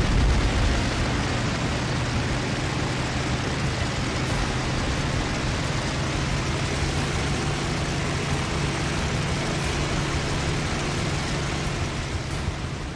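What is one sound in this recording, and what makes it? A propeller plane's engine drones steadily close by.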